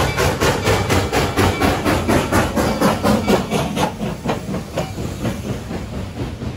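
A steam locomotive chuffs loudly in rapid bursts as it passes close by, then fades.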